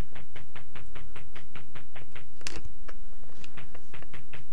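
Quick retro game footsteps tap in a steady rhythm.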